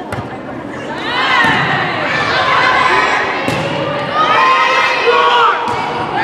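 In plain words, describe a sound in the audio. Young women players shout and call out to each other.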